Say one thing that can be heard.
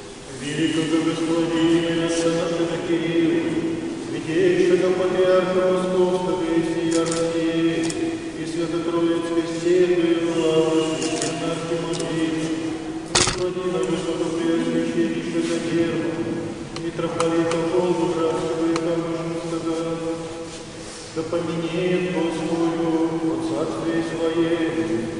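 A choir of men chants in an echoing room.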